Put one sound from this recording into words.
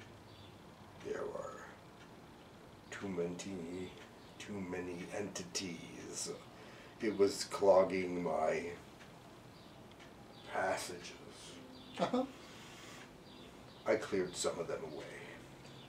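A middle-aged man speaks calmly nearby, in short phrases with pauses.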